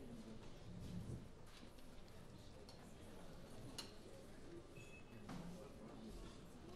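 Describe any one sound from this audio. A double bass is plucked.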